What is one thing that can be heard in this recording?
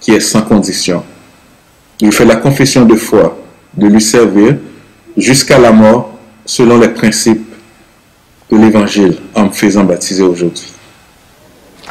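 A man speaks earnestly and close to the microphone.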